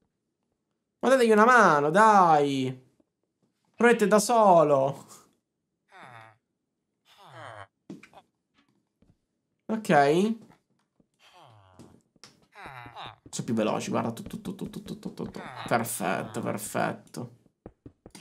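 A young man talks with animation into a close microphone, pausing often.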